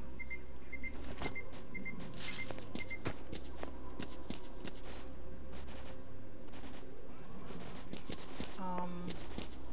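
Footsteps crunch on the ground at a steady walking pace.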